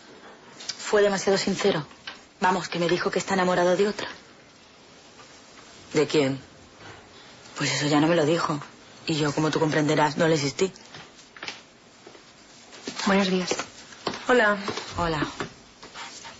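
A young woman speaks quietly and closely.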